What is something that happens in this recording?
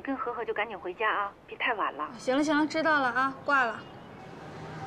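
A young woman talks on a phone with animation.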